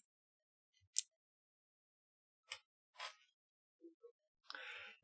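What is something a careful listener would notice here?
Small plastic parts click softly as they are handled.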